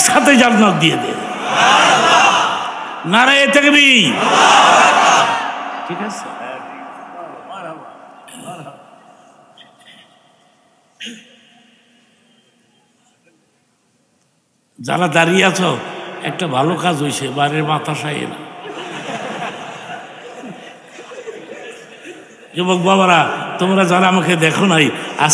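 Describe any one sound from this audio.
An elderly man preaches with animation through a microphone and loudspeakers, his voice echoing.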